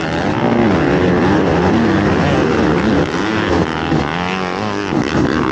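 Several other dirt bike engines roar nearby.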